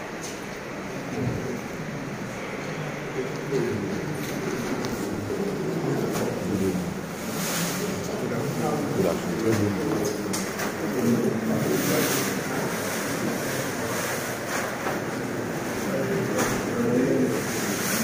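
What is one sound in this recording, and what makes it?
A crowd of men and women murmur and talk nearby in an echoing room.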